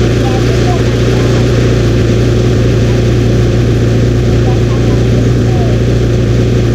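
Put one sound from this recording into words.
A quad bike engine hums steadily as it drives along.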